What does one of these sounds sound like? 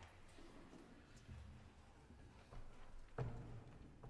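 A brass band plays softly in a large hall.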